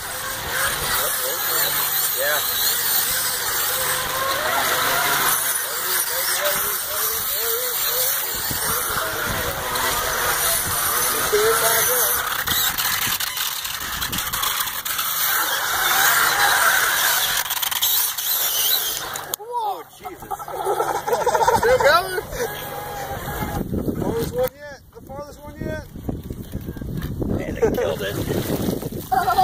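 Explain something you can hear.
Wheels splash and squelch through muddy water.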